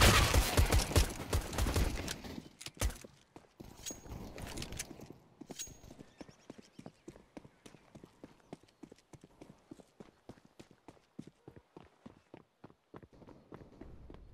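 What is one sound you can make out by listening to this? Footsteps patter quickly and steadily on hard ground.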